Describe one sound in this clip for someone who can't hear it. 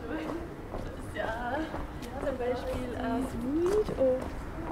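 Young women chat nearby as they walk past.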